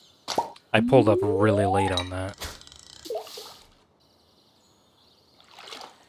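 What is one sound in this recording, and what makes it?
A fishing line is cast and the bobber splashes into water.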